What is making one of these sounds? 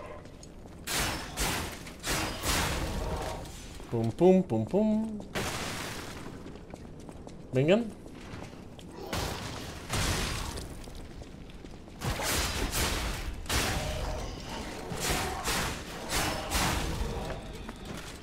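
Sword blows strike and thud in a fight.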